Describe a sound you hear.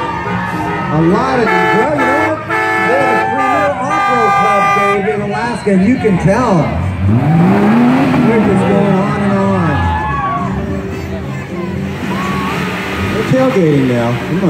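A crowd cheers and shouts outdoors.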